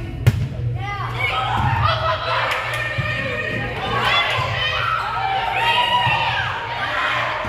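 Spectators cheer and shout loudly.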